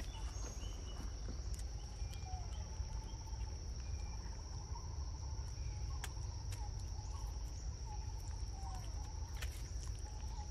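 Monkeys munch and smack on soft fruit up close.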